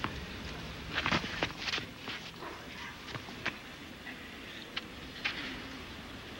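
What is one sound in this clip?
A tennis ball bounces on a clay court.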